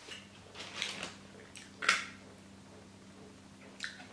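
A tortilla chip crunches as a young woman bites it.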